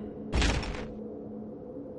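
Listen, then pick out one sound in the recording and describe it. A metal wrench whooshes through the air.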